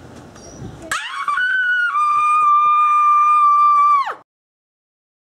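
A young girl screams in a long, high, steady shriek.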